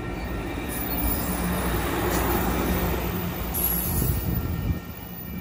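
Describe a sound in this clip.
A passenger train rolls slowly past, its wheels rumbling and clacking on the rails.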